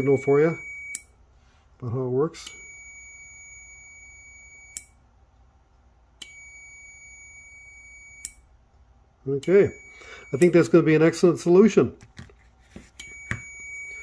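A small relay clicks on and off.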